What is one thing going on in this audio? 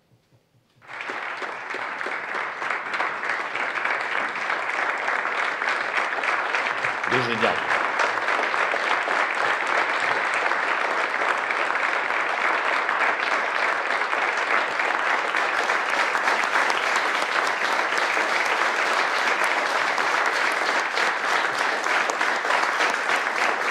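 A large crowd applauds steadily in an echoing hall.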